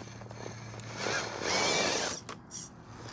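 Plastic tyres scrape and grind over rock.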